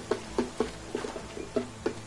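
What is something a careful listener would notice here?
Water splashes as a child runs through a shallow stream.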